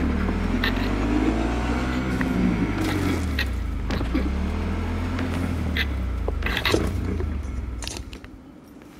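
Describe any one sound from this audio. A motorcycle engine roars and revs up and down as the motorcycle rides along.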